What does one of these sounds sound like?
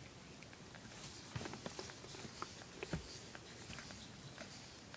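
A hand rubs and rustles through a cat's fur close by.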